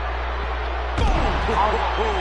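A body slams hard onto a floor with a heavy thud.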